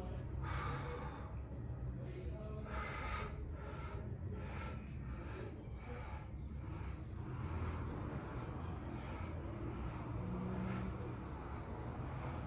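A man exhales sharply with each swing of a weight.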